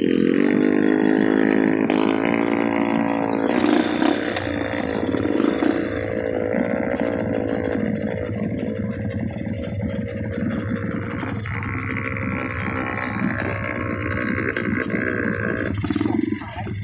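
A motorcycle engine idles close by with a steady hum.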